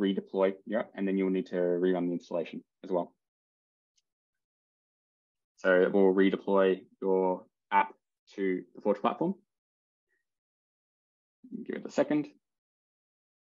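A man talks calmly into a microphone, heard as if over an online call.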